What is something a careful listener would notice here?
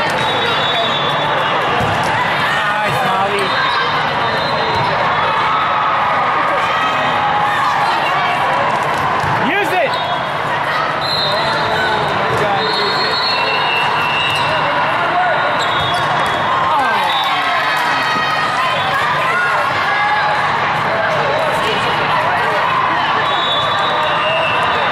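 A large crowd chatters and calls out steadily in a big echoing hall.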